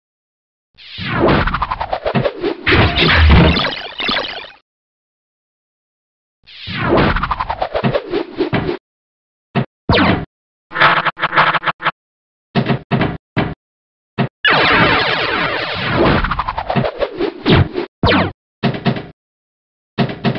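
Electronic pinball sound effects chime and ping in bursts.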